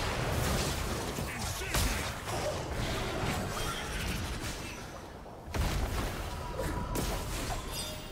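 Game spell effects and blows crackle and thud in a busy fight.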